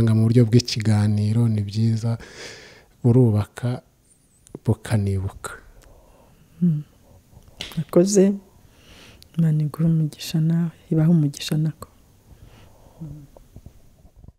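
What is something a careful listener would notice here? An elderly woman speaks calmly and slowly into a close microphone.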